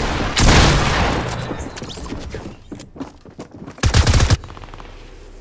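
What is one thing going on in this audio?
Gunshots fire in loud, quick bursts.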